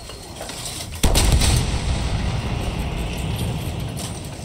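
A rifle shot booms loudly and rumbles away.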